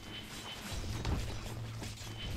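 An explosion booms with a fiery blast.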